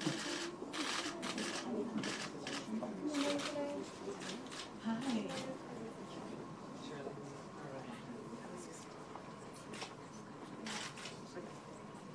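Several men and women talk and greet one another nearby.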